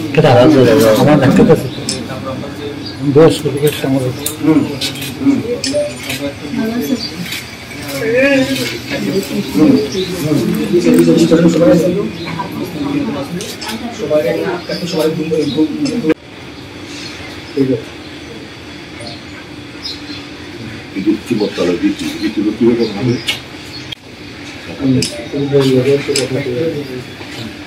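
A middle-aged man speaks with animation close by.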